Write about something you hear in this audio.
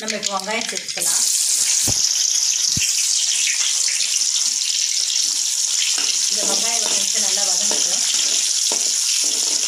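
Food sizzles loudly as it fries in hot oil.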